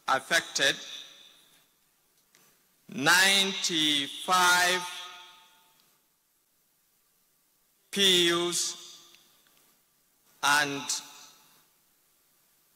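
A man speaks loudly and with force into a microphone in a large echoing hall.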